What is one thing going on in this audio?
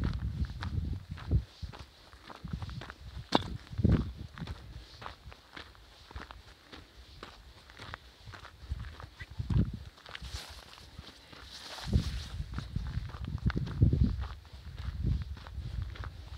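Footsteps crunch on a dirt and gravel path.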